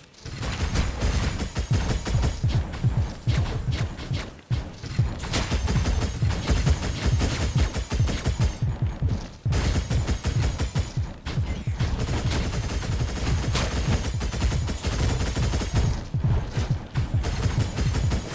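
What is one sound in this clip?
Blades slash and energy shots fire in quick bursts during a fight.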